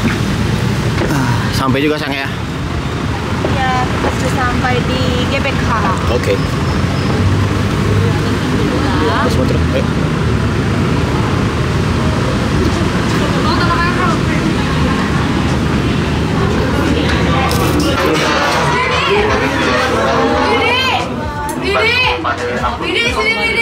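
A crowd chatters around at close range.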